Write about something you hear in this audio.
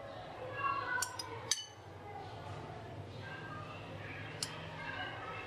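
A metal spoon clinks against a bowl.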